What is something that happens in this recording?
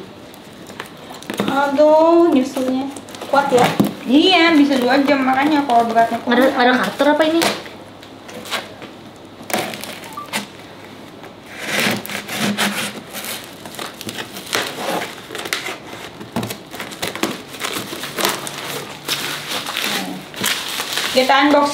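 Scissors cut through tape and cardboard with scraping and snipping sounds.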